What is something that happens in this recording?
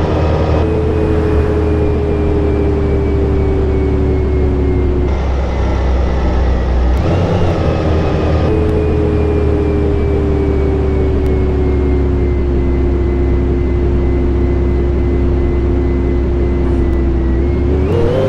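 A bus engine hums and whines steadily as the bus drives along.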